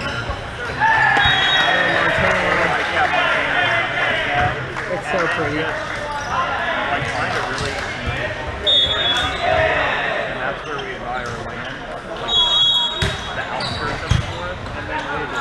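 Men call out and chatter loudly in a large echoing gym.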